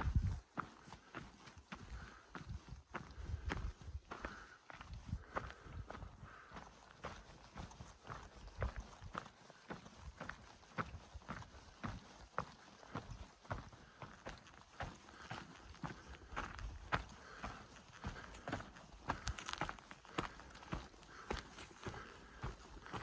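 Footsteps crunch on a dirt trail at a walking pace.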